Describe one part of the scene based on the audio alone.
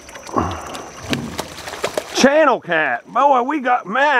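Something splashes into water.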